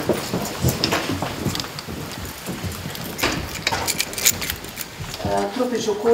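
People murmur and move about in a room.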